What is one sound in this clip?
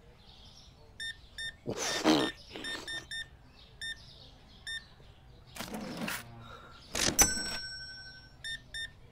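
A checkout scanner beeps with short, high bleeps.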